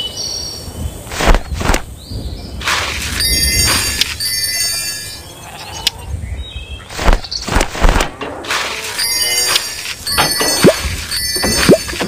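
Short bright game chimes and pops ring out as items are collected.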